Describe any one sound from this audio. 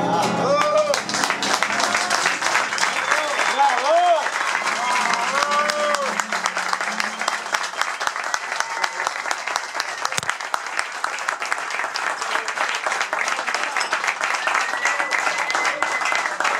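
A small group applauds with steady clapping close by.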